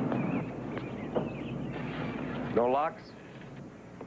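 A door opens with a creak.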